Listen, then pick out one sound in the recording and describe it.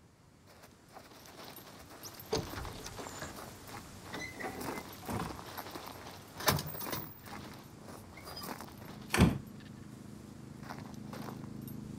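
Footsteps crunch over dry grass and dirt.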